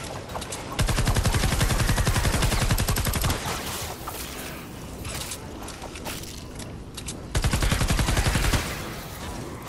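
A rapid-fire gun shoots in fast, loud bursts.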